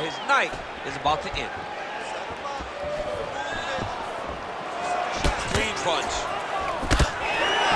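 Punches and kicks land with heavy, dull thuds.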